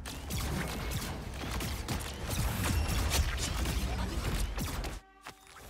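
Energy blasts and gunfire crackle rapidly in a busy fight.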